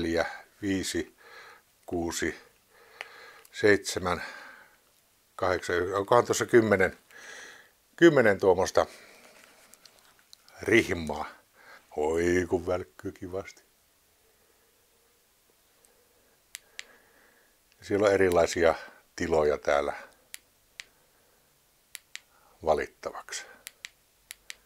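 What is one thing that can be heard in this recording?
An elderly man talks calmly and close by, in short bursts with pauses.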